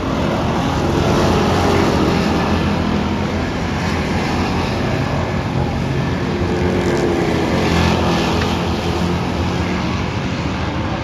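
Race car engines roar loudly around a dirt track.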